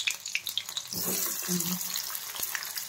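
Chopped onions drop into hot oil with a sudden loud hiss.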